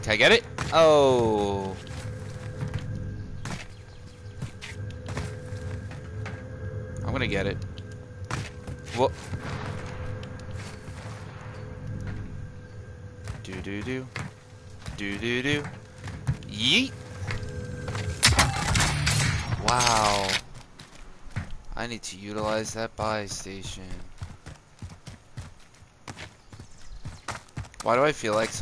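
Footsteps crunch quickly over hard ground.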